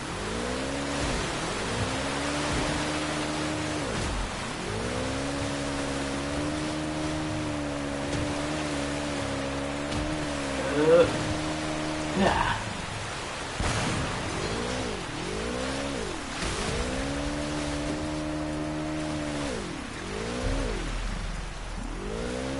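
A jet ski engine drones and revs up and down.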